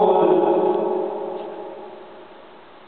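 A man chants a long held note into a microphone, echoing in a large hall, then falls silent.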